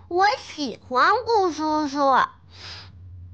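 A young boy speaks close by with animation.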